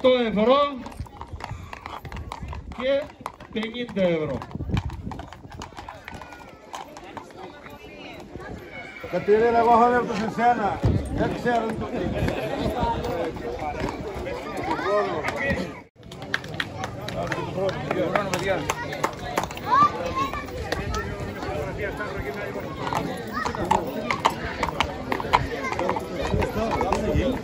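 Horse hooves clop on pavement.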